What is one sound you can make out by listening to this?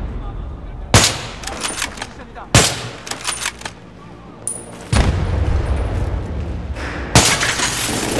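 A rifle fires single loud, sharp shots that echo briefly.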